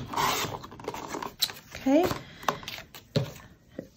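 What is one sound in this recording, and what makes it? A paper trimmer blade slides along and cuts through card.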